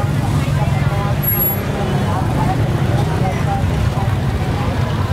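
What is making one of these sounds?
A busy crowd of voices chatters all around outdoors.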